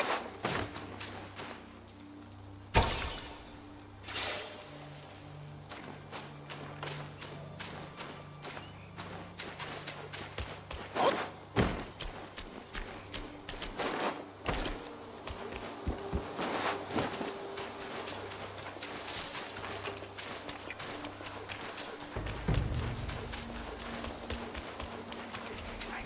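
Footsteps crunch over dirt and leaves.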